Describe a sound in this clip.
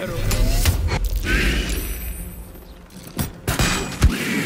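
Arrows strike with sharp impacts.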